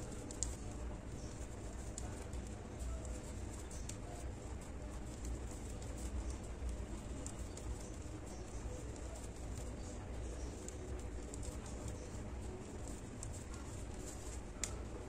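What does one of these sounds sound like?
A crochet hook softly taps and rustles through yarn.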